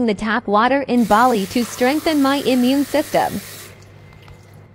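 Water runs from a tap into a mug.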